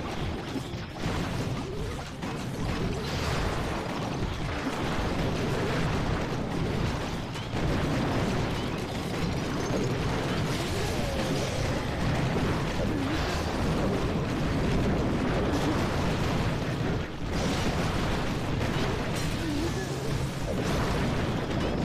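Explosions boom and fire crackles in a busy game battle.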